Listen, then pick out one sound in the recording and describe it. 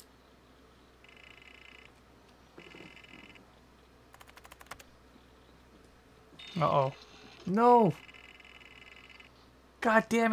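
A computer terminal beeps in short bursts.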